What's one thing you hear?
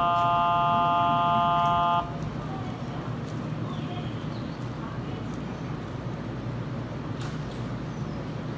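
An electric train hums steadily while standing at a platform.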